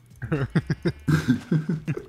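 A pig squeals as it is struck.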